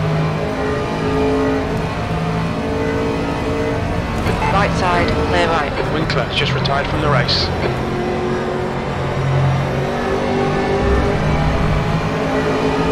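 A racing car engine roars steadily, its pitch shifting as it speeds up and slows down.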